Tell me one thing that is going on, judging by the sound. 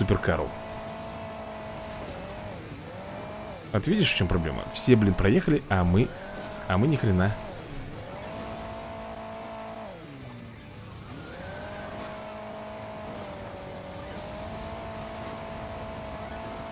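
A car engine drones steadily, dipping and rising in pitch as it revs.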